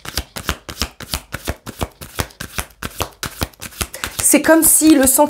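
Cards shuffle and riffle quickly.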